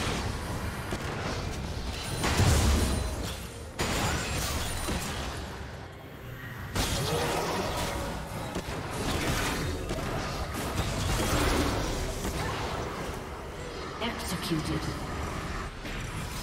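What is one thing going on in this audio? Game spell effects burst and crackle during a fight.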